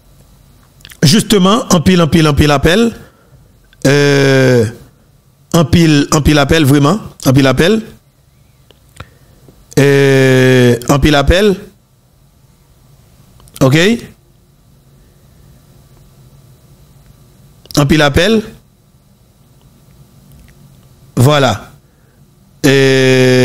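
A man speaks into a close microphone in short, calm bursts with pauses.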